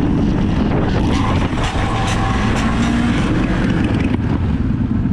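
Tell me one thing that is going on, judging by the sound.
A motorcycle scrapes and slides across the road.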